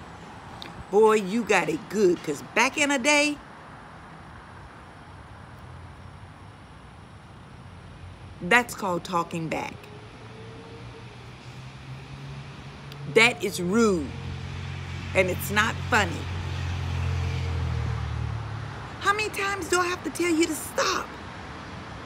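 A middle-aged woman speaks close by in short, animated bursts.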